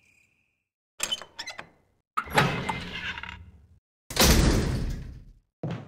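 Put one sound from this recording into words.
A heavy metal gate creaks open slowly.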